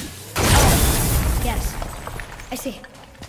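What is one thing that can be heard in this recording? Rocks crash and tumble down loudly.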